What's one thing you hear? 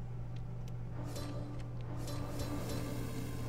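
A game card whooshes and chimes as it is played.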